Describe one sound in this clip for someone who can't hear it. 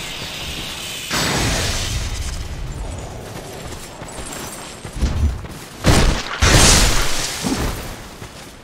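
A lightning spell crackles and bursts.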